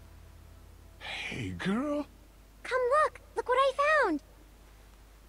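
A man speaks warmly and calmly nearby.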